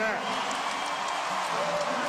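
A man in the crowd shouts loudly.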